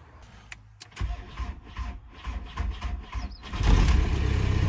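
A starter motor cranks in short bursts.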